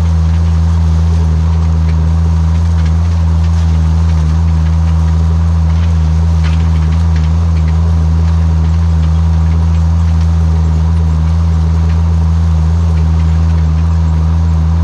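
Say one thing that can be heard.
A tractor engine drones steadily up close.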